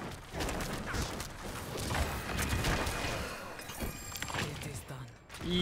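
Game combat sounds clash and crash.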